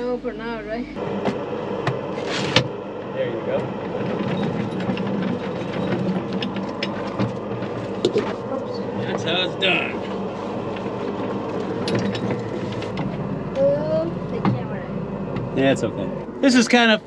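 A mine cart rumbles along rails.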